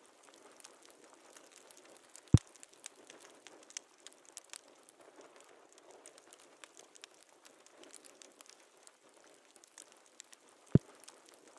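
A fire crackles softly in a fireplace.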